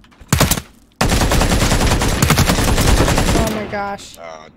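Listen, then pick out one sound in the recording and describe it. Rapid gunfire rattles from a video game.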